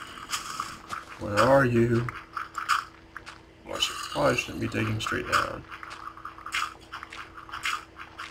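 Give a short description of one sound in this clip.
Dirt blocks crunch as they are dug out.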